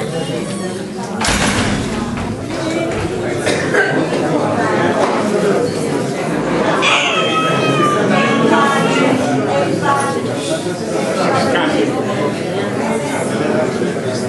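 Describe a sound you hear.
A man speaks to a seated audience.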